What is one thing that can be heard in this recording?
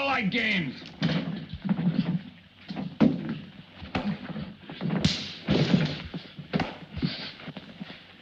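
Blows and knocks thump during a fight.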